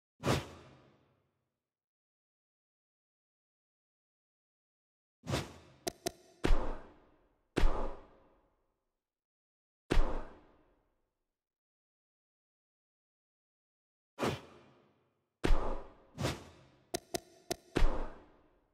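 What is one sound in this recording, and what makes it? Short whooshing menu sounds with sharp clicks come now and then.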